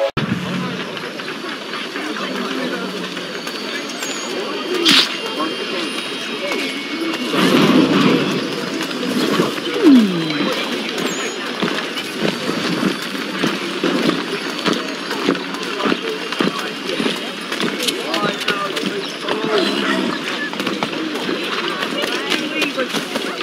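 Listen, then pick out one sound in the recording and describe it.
Footsteps hurry over cobblestones.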